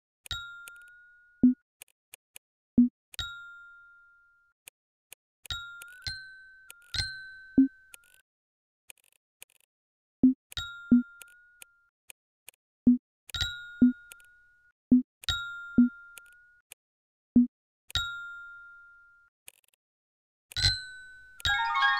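Game chimes ping as squares are filled in.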